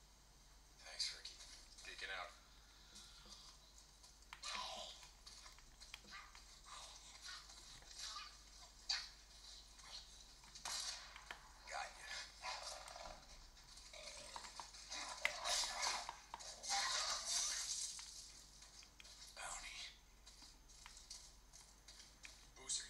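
Bursts of video game sound effects play from a handheld console's small speakers.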